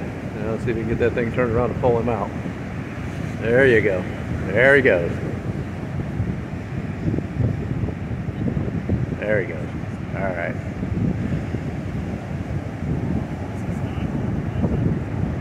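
Wind blows across the beach outdoors.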